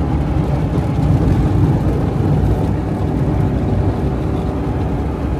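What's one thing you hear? Tyres roll and crunch over a rough road.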